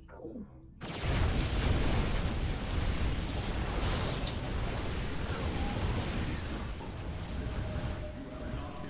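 Lasers and weapons fire rapidly in a noisy sci-fi battle.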